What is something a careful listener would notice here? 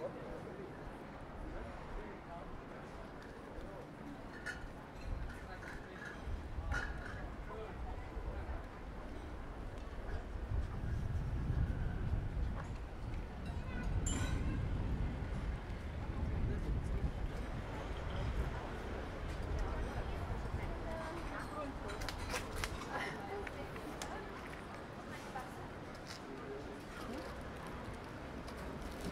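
Outdoors, light wind rumbles in the open street.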